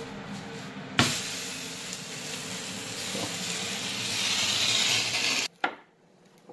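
Food sizzles loudly in a hot pot.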